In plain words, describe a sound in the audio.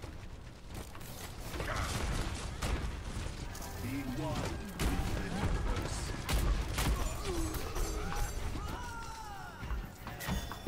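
Game gunfire crackles in rapid bursts.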